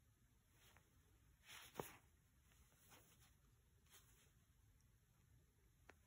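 Thread rustles as it is pulled through cloth.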